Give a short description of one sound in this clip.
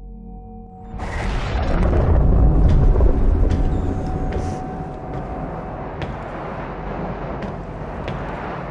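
A deep engine rumble fills a large echoing hall.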